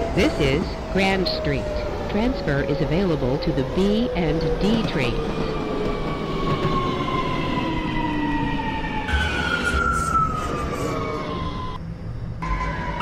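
A subway train's electric motors whine, slowly falling in pitch as the train slows.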